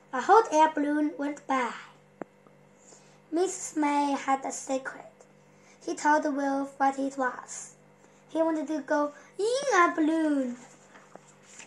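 A young boy reads aloud close by, in short bursts.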